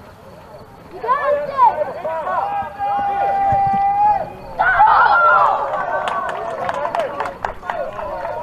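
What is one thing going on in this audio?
Men shout and cheer outdoors.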